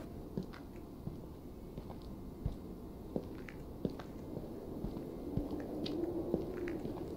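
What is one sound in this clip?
Footsteps crunch on gravel and dry leaves at a steady walking pace.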